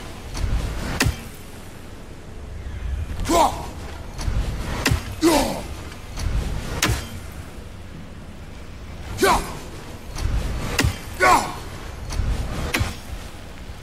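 An axe strikes with a sharp thud.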